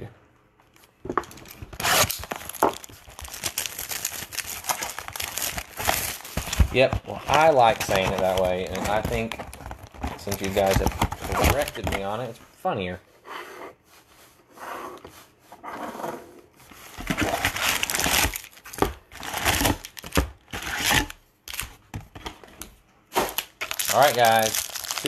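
Foil wrappers crinkle and rustle as hands handle them.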